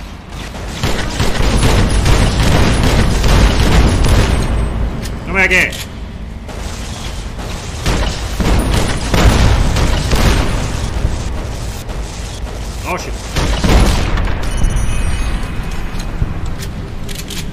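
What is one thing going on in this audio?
Gunfire bursts out in loud rapid rounds.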